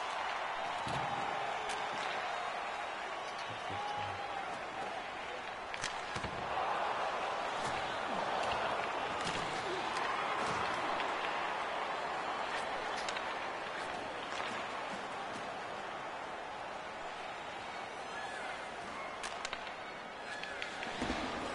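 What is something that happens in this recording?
Hockey sticks sharply clack against a puck.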